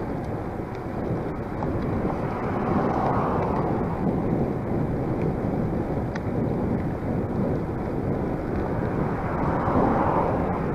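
Wind rushes steadily and loudly.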